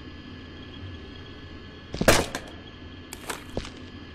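A small frame clacks down onto a metal cabinet.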